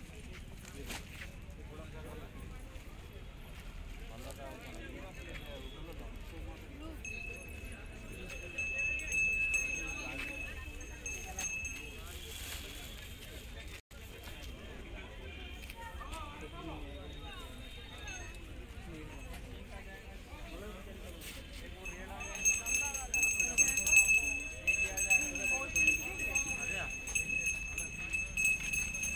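A crowd of people chatter nearby, with voices overlapping.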